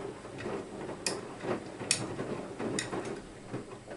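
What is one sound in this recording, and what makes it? Small items clink against a washing machine drum.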